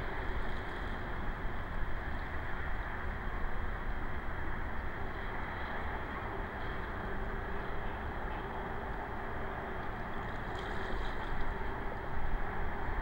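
Water laps softly.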